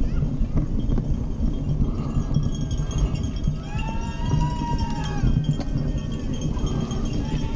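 Wind rushes loudly past, as if heard while riding fast outdoors.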